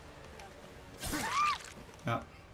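A blade strikes a body with a heavy, wet thud.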